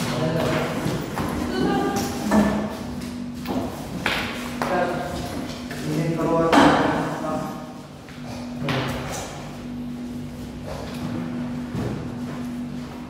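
Young boys talk and chatter nearby.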